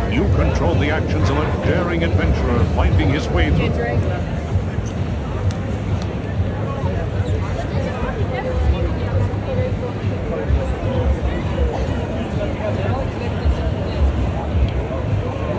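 A crowd of people chatters all around in a busy, noisy hall.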